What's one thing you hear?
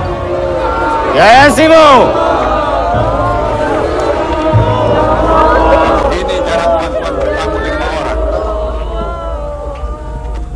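A crowd of men shouts and clamours nearby.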